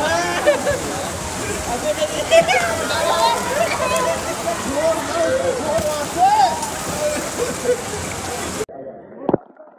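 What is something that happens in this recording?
A group of young men shout and cheer excitedly nearby.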